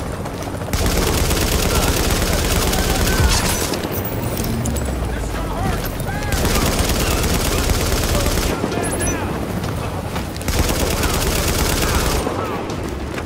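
Automatic rifles fire in rapid bursts.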